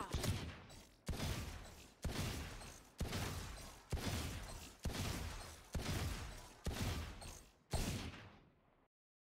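Gunshots from a pistol ring out one by one at a steady pace, each with a short echo.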